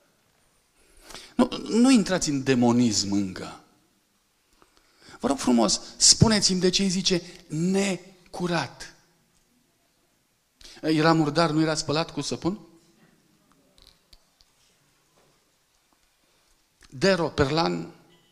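A man speaks calmly through a microphone in a large hall, pausing between phrases.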